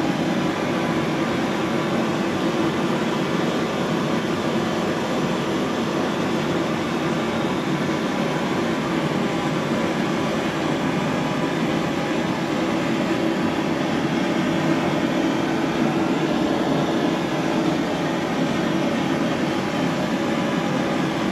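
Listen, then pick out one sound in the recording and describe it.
A potter's wheel whirs steadily.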